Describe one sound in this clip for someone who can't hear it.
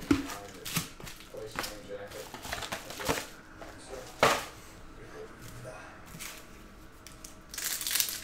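Card packs tap down onto a table.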